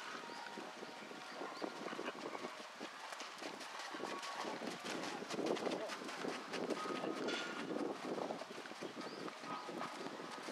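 Horse hooves thud rhythmically on soft sand.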